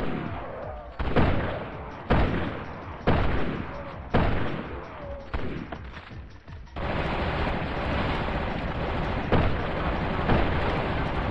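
Gunshots bang in sharp bursts, echoing.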